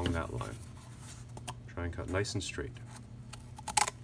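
Scissors snip into cardboard.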